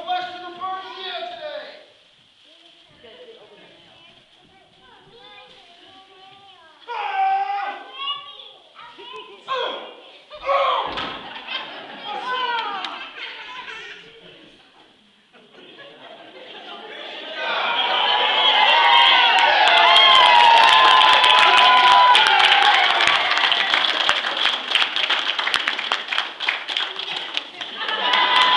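Children speak and call out in a large echoing hall.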